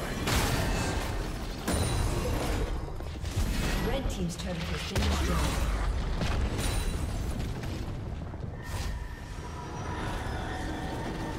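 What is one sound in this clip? Magical blasts and blows clash rapidly in a game battle.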